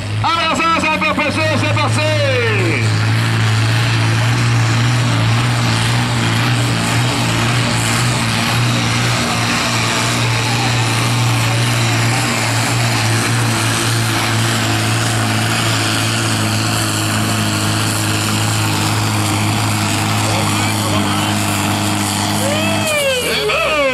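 A tractor engine roars loudly and steadily under heavy load.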